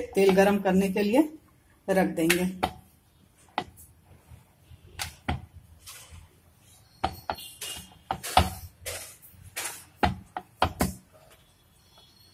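A rolling pin knocks and rolls on a wooden board.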